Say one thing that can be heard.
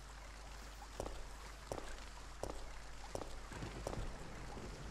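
Footsteps climb stone steps.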